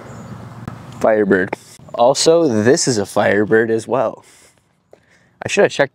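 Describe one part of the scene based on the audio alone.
A young man speaks calmly into a clip-on microphone, close by.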